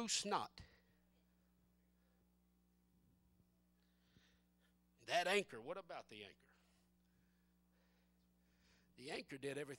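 A man speaks loudly and with animation through a microphone in an echoing hall.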